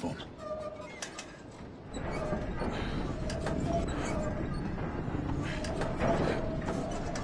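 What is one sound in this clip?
Sharp knocks and thuds sound now and then.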